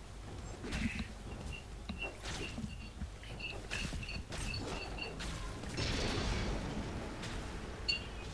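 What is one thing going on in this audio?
Weapons clash in quick hits.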